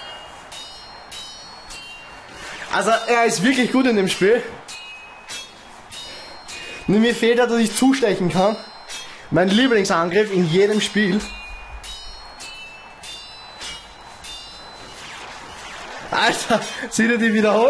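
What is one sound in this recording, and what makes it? Short, sharp game hit effects crack now and then.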